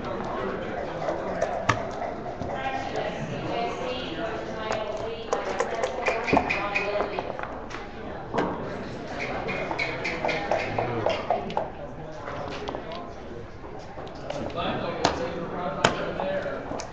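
Plastic game pieces click against each other.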